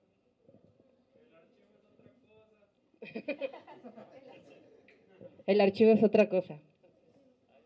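A young woman speaks and laughs through a microphone.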